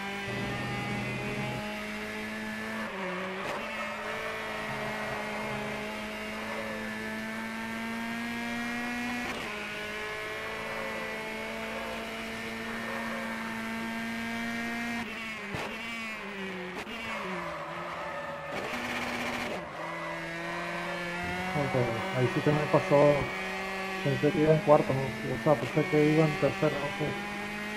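A racing car engine roars steadily, rising in pitch and dropping with each gear change.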